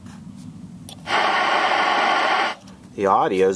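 An old television hisses with loud static.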